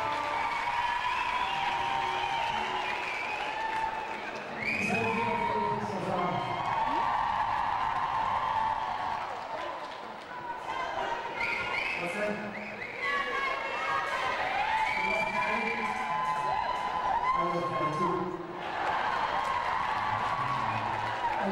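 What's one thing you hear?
A live band plays loudly in an echoing hall.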